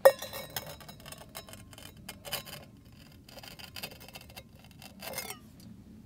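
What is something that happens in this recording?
A hand scrapes and rustles against rock close by.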